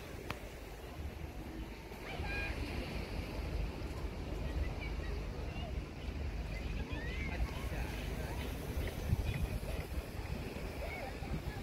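Gentle waves wash against rocks outdoors.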